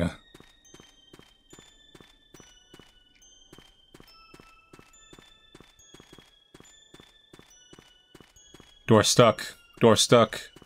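Footsteps tap steadily.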